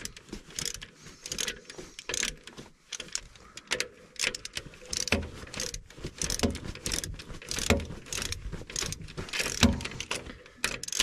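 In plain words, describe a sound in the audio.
Metal tools clank against metal parts.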